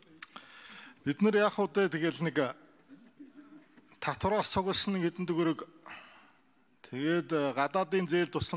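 A man speaks calmly and formally into a microphone, in pauses.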